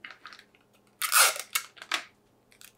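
Sticky tape is pulled off a roll with a short rasp.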